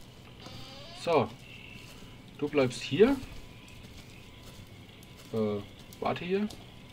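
A goat bleats several times.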